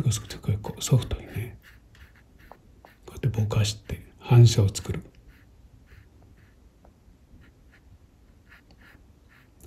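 A paintbrush dabs and brushes softly on paper.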